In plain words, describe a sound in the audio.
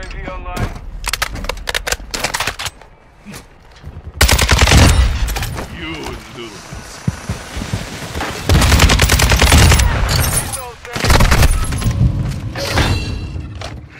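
A rifle fires rapid bursts of gunshots.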